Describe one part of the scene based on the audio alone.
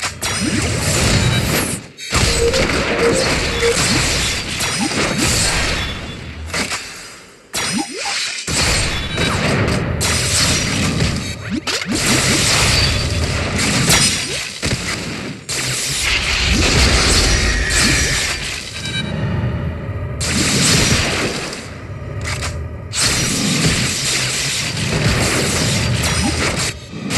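Sword strikes and magic blasts crash in a battle.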